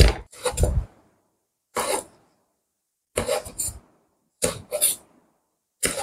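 A knife chops on a wooden board in short bursts.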